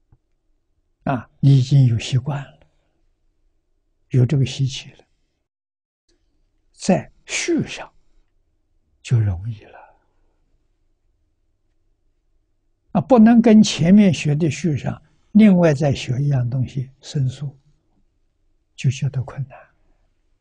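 An elderly man speaks calmly, with long pauses.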